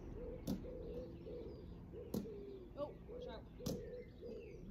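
A ball thumps sharply a few times outdoors.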